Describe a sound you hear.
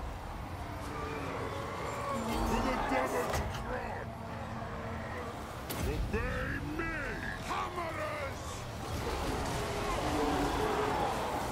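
Swords and shields clash in a battle.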